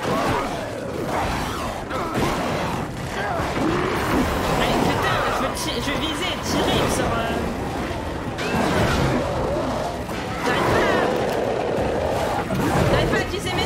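Monsters snarl and screech.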